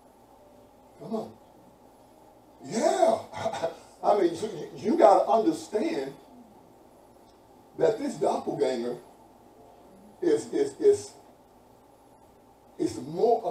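A man speaks with animation, pausing between phrases.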